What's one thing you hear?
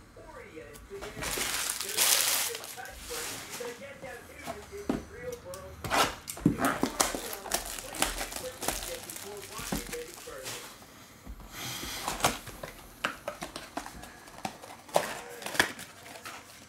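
Cardboard packs rustle and tap as they are handled.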